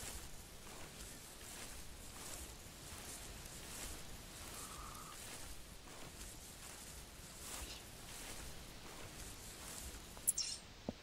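Footsteps crunch through snow at a steady walking pace.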